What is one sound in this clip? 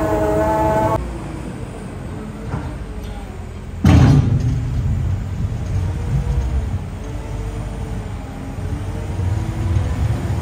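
A loader engine runs with a low rumble.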